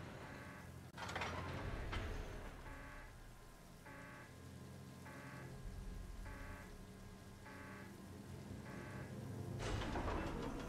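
A crane motor hums and whirs as a load swings.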